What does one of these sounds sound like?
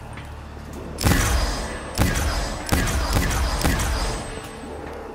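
An energy gun fires with buzzing zaps.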